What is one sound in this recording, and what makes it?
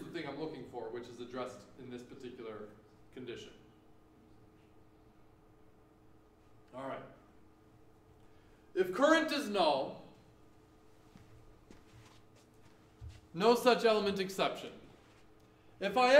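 A man lectures calmly, heard through a microphone in an echoing room.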